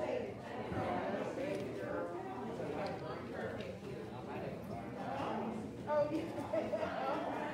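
Several adults chat with one another in a room with a light echo.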